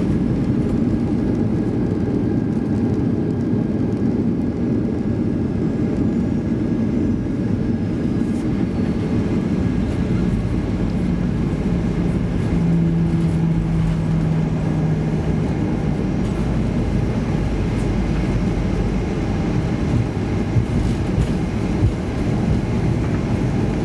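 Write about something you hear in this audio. A jet airliner's engines rumble steadily from inside the cabin as the plane taxis.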